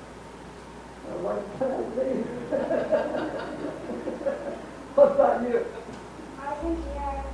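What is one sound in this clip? An elderly woman speaks calmly into a microphone, heard through a loudspeaker in a large room.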